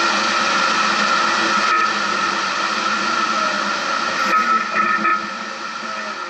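A vehicle engine hums steadily as it drives slowly.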